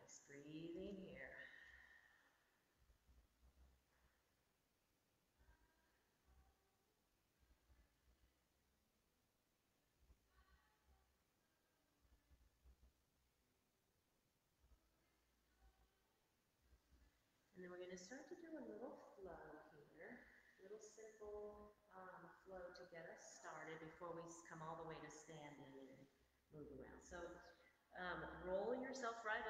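A woman speaks calmly through a microphone, giving instructions.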